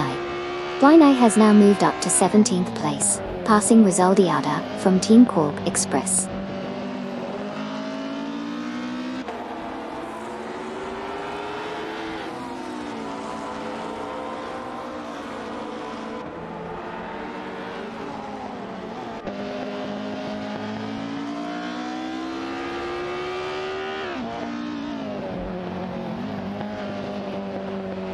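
A racing car engine roars steadily, its pitch rising and falling as it speeds up and shifts gears.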